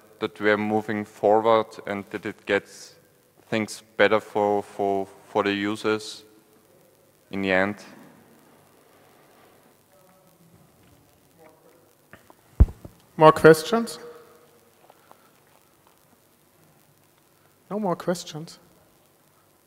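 A man speaks calmly into a headset microphone, with pauses.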